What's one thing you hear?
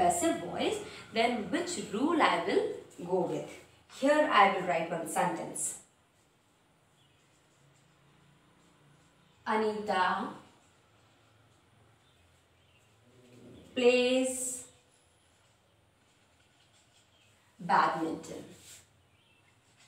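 A woman speaks calmly and clearly, close by, with pauses.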